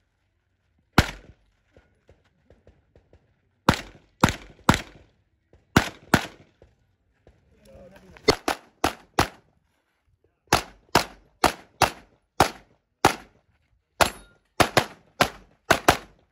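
A pistol fires loud shots in quick bursts outdoors, each with a short echo.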